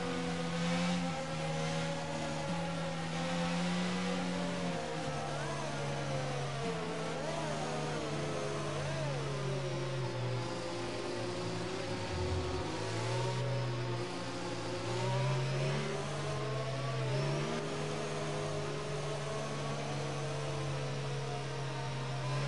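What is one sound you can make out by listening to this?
A racing car engine hums at low revs, changing pitch as the car weaves.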